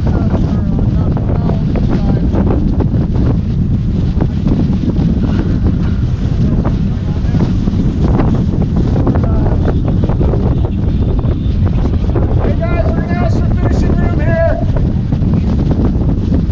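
Wind roars loudly across the microphone outdoors.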